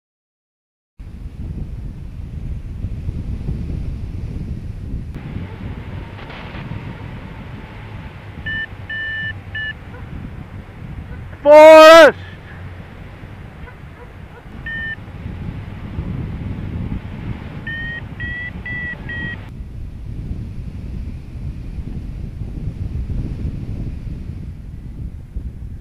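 Wind rushes and buffets loudly past a hang glider in flight.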